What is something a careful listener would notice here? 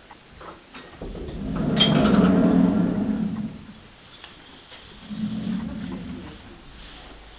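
A horse blows air through its nostrils close by.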